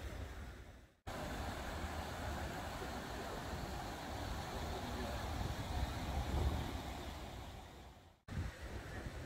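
Water rushes steadily down a weir.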